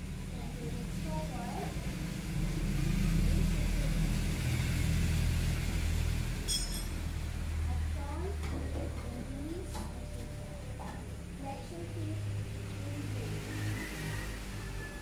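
A few women talk softly at a distance outdoors.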